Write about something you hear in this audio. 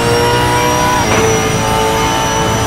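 A racing car engine drops sharply in pitch as the gear shifts, then climbs again.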